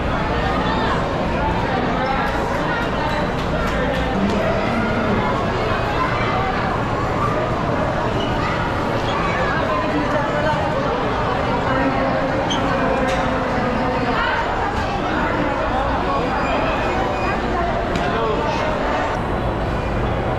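A large crowd chatters loudly in an echoing indoor hall.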